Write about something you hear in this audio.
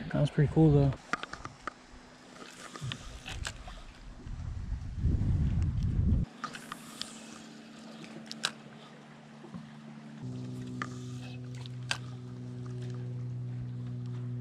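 An electric boat motor hums steadily.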